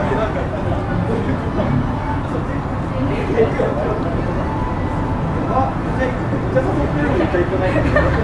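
Young men talk casually nearby, outdoors.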